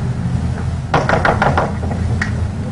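A woman knocks on a door.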